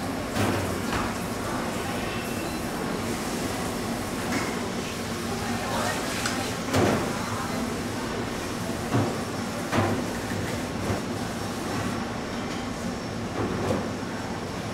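Soft knocks sound as food is set down on a metal counter and a scale.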